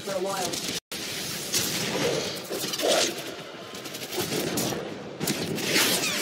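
A beam weapon fires in bursts with a harsh crackle.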